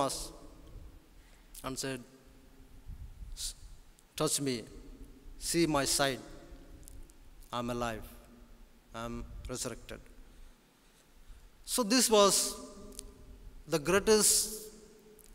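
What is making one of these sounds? A man speaks calmly and slowly into a microphone, in a large echoing hall.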